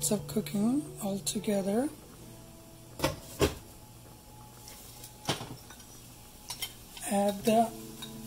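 Soup simmers and bubbles gently in a pot.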